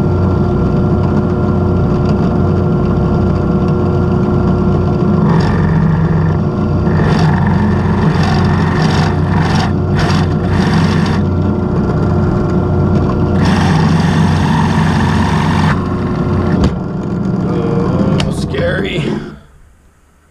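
A drill press whirs steadily as it bores into wood, then winds down.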